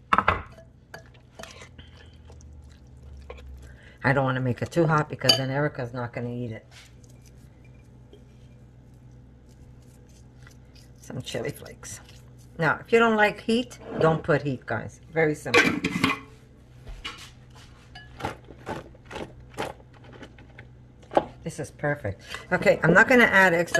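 Hands squish and toss a wet mixture in a bowl.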